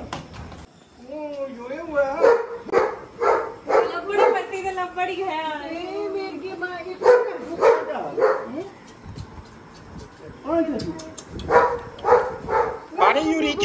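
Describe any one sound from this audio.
A small child cries and wails loudly nearby.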